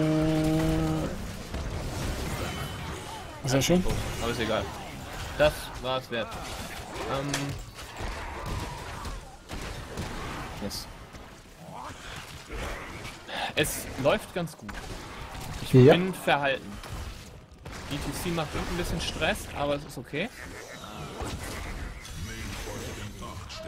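Video game combat sounds of spells and blows crackle and clash repeatedly.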